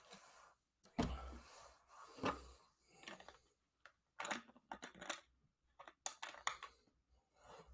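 Small objects click and tap on a table.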